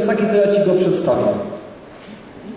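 A man talks nearby in a large room.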